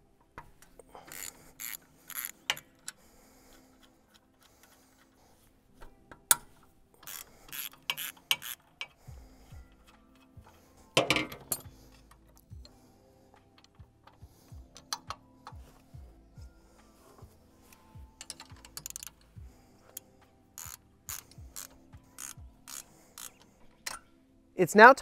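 A ratchet wrench clicks rapidly as bolts are turned.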